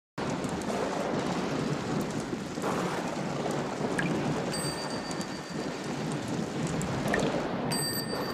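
Rain pours and splashes steadily outdoors.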